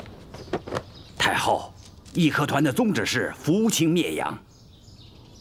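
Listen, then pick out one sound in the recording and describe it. A middle-aged man speaks gravely, close by.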